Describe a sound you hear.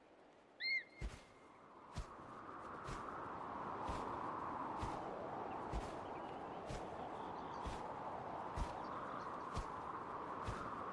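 A large bird's wings beat in flight with regular thumps.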